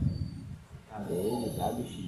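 A plastic checker piece clicks on a board.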